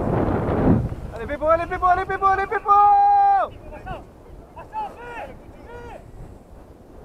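Young men shout across an open field in the distance.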